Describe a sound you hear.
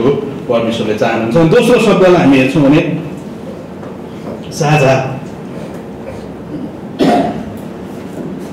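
A man preaches with animation into a microphone in a reverberant hall.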